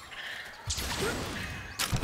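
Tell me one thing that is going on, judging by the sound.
A grappling line zips through the air.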